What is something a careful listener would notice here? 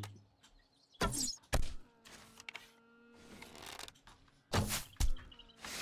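A bowstring twangs as an arrow is shot.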